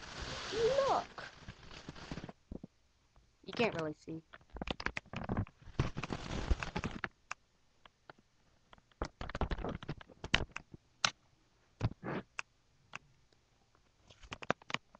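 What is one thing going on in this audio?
Something is handled close by with knocks and rustles.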